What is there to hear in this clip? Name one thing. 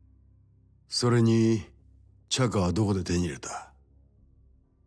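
An older man speaks calmly and sternly.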